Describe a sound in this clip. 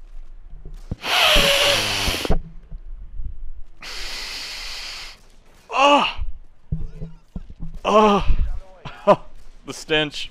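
A young man shouts and yells loudly into a close microphone.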